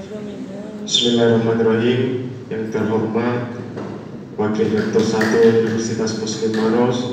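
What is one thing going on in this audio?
A young man speaks through a microphone in an echoing hall.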